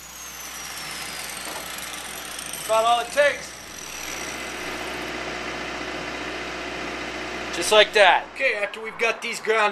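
An angle grinder whirs steadily.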